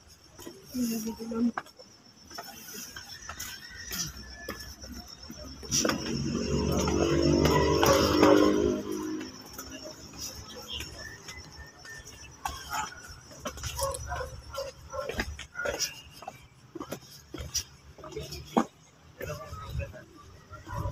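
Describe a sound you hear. Footsteps scuff on stone steps and paving.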